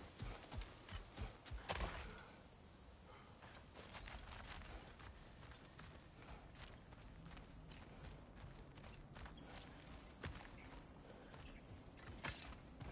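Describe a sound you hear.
Heavy footsteps tread on stone and earth.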